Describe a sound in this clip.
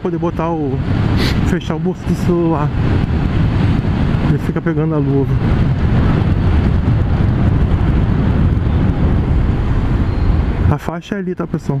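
Wind roars against a microphone as a motorcycle rides along.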